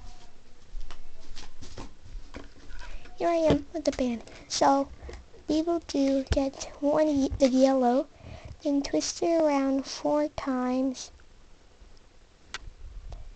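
Fingers handle a small plastic hook and rubber bands with soft rustles and clicks.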